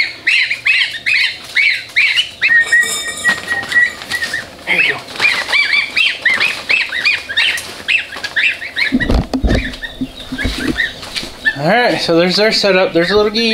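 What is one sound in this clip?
Baby chicks cheep loudly and repeatedly, close by.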